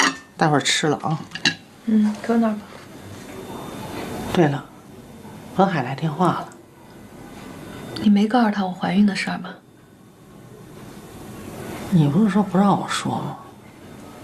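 A middle-aged woman speaks quietly and gently close by.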